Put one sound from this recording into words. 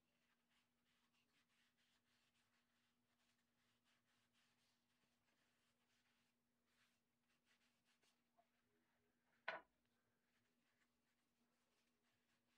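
A knife softly scrapes as it peels a potato.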